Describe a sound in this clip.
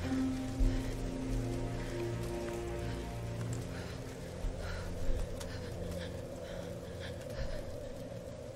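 A young woman breathes heavily and gasps close by.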